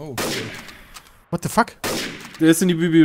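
A rifle fires loud shots.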